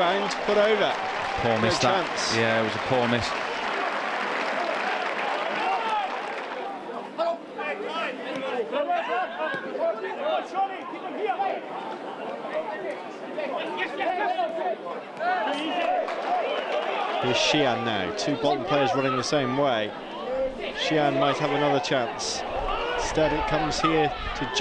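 A crowd murmurs and calls out outdoors.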